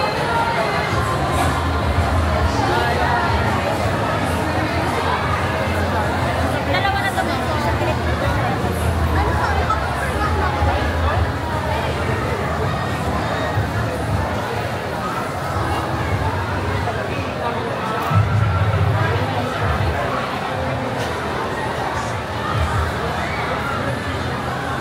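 A crowd of people chatters throughout in a large echoing hall.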